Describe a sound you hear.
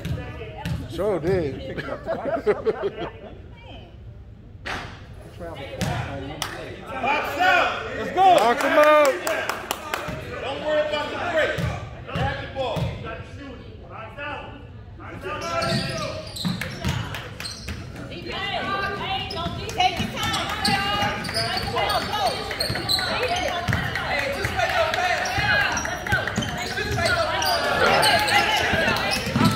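People chatter and call out in a large echoing gym.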